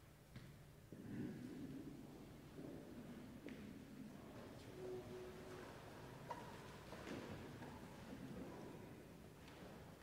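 People shuffle and rise to their feet, echoing in a large hall.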